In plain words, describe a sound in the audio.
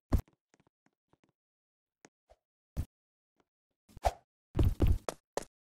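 Footsteps thud on wooden crates.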